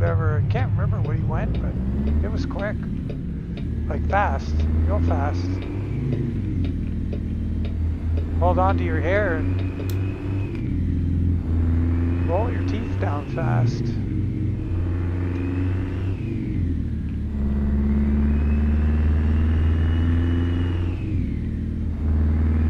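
A truck engine drones steadily, rising and falling in pitch as gears shift.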